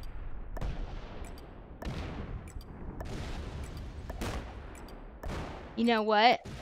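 A woman speaks through a headset microphone.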